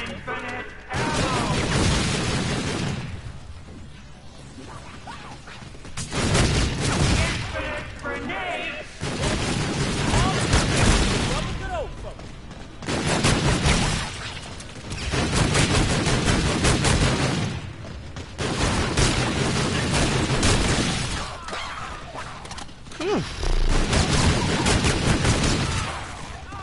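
Guns fire in rapid bursts with loud bangs.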